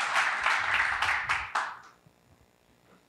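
An audience applauds in a room, then the clapping dies away.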